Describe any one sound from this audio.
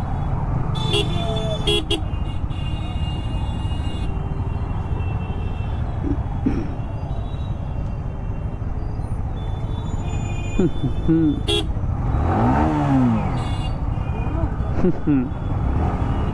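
Horns honk in busy traffic.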